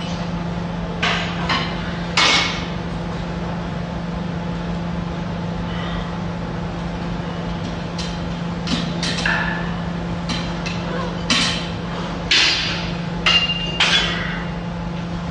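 Weight plates clank on a cable machine.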